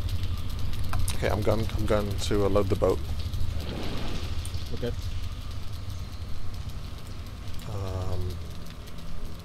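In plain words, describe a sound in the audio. A man speaks casually, close to a microphone.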